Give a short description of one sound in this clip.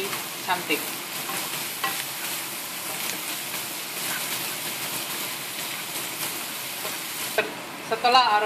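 Food sizzles and crackles in a hot frying pan.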